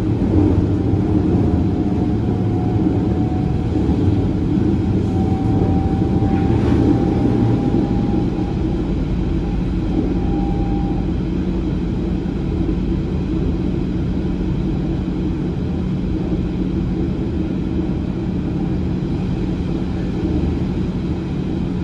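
A train rumbles steadily along the rails, heard from on board.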